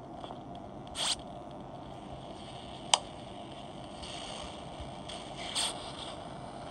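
A tablet game gives short clicking and buzzing effects as switches are flipped.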